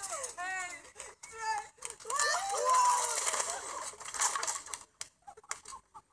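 Young girls shriek and laugh excitedly.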